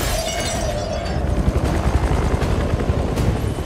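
A hovering drone hums steadily with a low roar.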